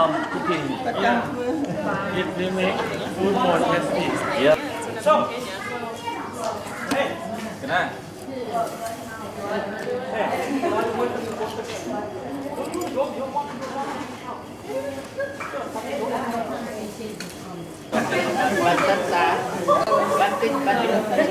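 Several men and women talk and chatter close by.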